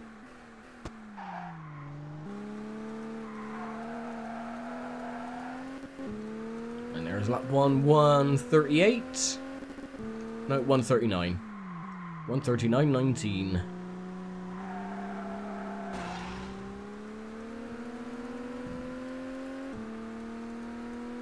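A racing car engine drones steadily, its pitch rising as it speeds up and dropping as it slows.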